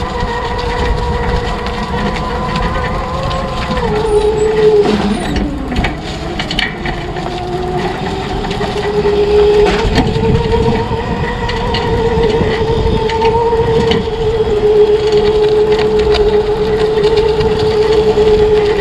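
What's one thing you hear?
Tyres rumble and crunch over a rough dirt track.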